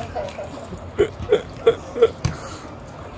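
A dog barks several times in short, sharp bursts.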